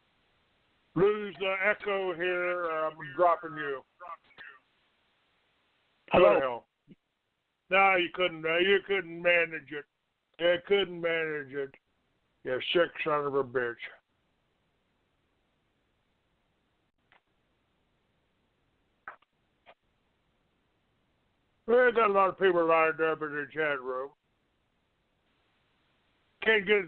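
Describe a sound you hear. An elderly man talks over a phone line with animation, in bursts and pauses.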